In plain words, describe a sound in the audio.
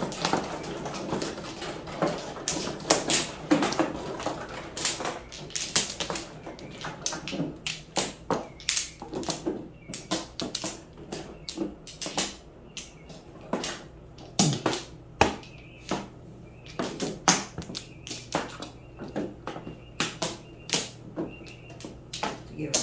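Plastic tiles clack and click sharply as they are placed and shuffled on a table.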